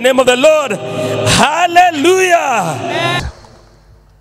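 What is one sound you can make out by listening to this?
A man sings loudly and fervently through a microphone.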